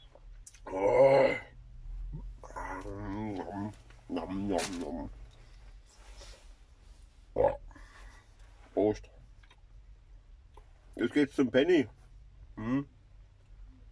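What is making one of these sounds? A man talks casually close by.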